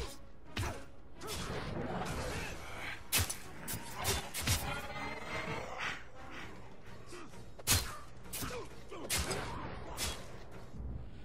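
Swords clash and strike sharply in a fast fight.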